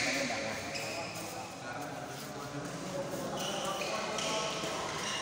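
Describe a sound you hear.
A shuttlecock is struck sharply with a racket in a large echoing hall.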